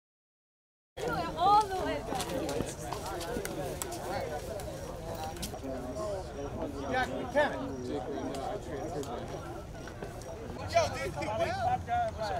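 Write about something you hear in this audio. A crowd of teenage boys chatters outdoors.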